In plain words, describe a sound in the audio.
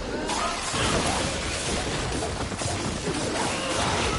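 Fire bursts and roars in short blasts.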